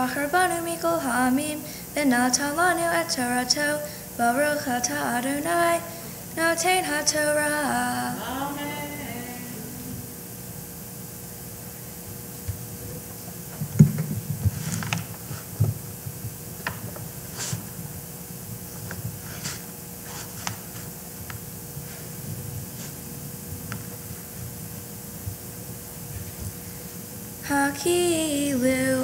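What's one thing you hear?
A young woman chants melodically into a microphone.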